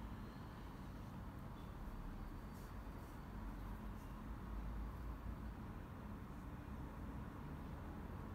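A paintbrush softly brushes across a canvas.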